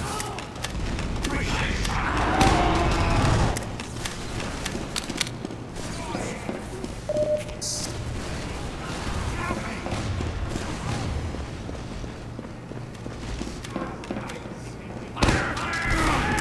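Gunshots and explosions crack out in quick bursts.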